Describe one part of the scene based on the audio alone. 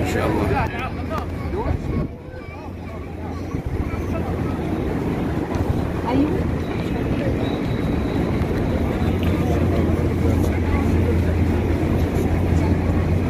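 Many voices of a crowd murmur and chatter outdoors.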